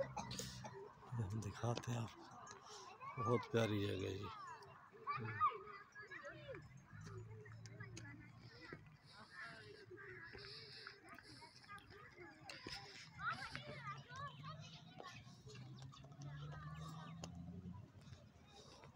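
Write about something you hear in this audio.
Women and children chatter and call out nearby, outdoors.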